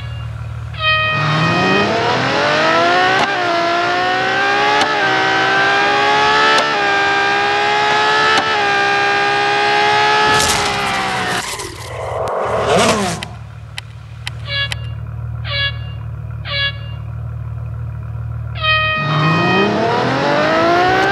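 A race car engine roars, rising in pitch again and again through gear changes.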